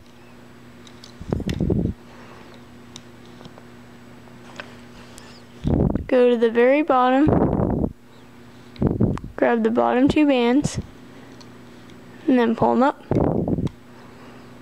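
A plastic hook clicks and scrapes softly against a plastic loom.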